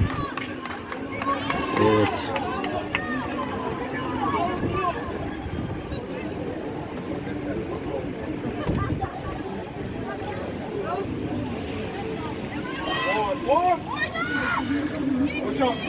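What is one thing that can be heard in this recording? Young men shout and call to each other outdoors, some distance away.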